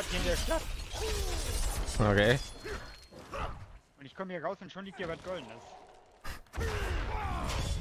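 Fiery blasts burst with a heavy whoosh.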